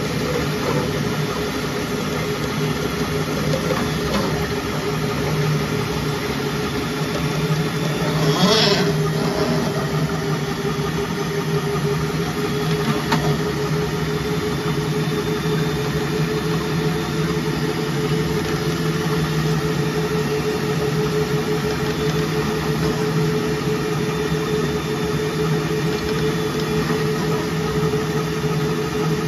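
A drain-cleaning machine hums steadily.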